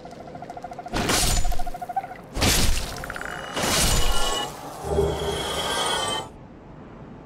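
Sword blows land with loud, heavy hits.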